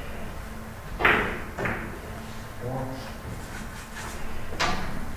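Billiard balls click against each other in a hall.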